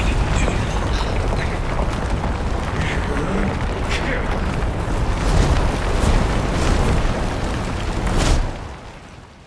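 A huge beast roars and growls loudly.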